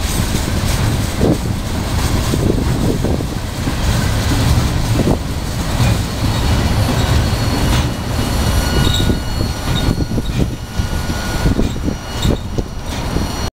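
A freight train rumbles past close by, its wheels clattering on the rails.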